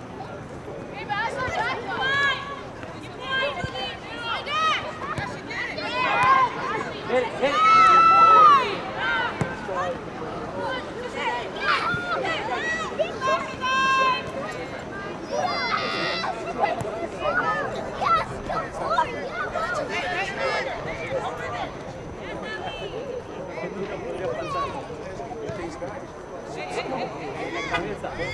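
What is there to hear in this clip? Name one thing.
Young women shout and call to each other across an open field outdoors.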